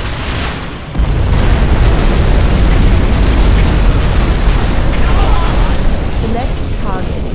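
A huge explosion booms and rumbles for several seconds.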